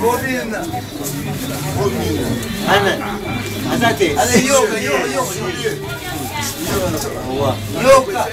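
Plastic bags rustle as a man handles them.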